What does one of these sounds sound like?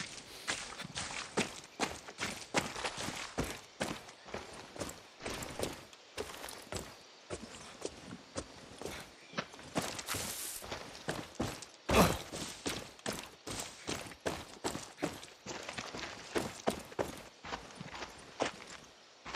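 Footsteps crunch through undergrowth at a steady walking pace.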